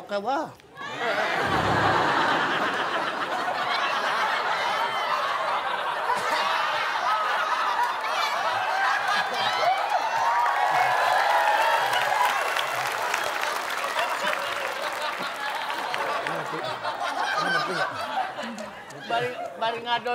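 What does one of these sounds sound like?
A crowd laughs and cheers loudly in a large room.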